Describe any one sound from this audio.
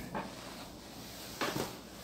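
An eraser rubs against a chalkboard.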